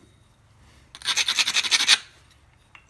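A stone edge is scraped with a rapid, rasping grind.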